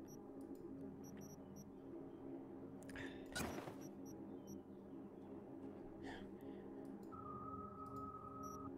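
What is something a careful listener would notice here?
Soft electronic menu clicks and short beeps sound now and then.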